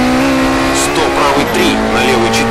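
A rally car engine drops in pitch as it shifts gear.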